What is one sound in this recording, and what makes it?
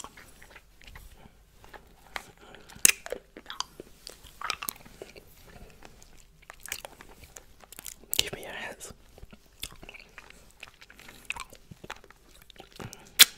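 A man whispers softly and closely into a microphone.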